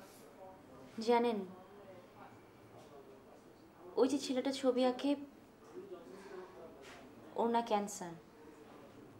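A young woman speaks quietly and tensely nearby.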